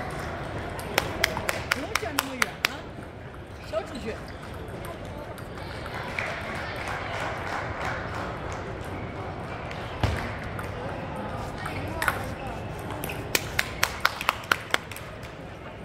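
A table tennis ball clicks back and forth in quick rallies.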